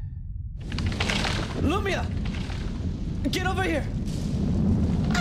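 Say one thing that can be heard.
A young man shouts urgently.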